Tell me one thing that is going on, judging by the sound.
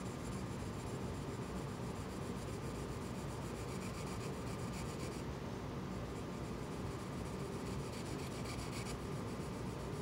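A colored pencil scratches softly across paper.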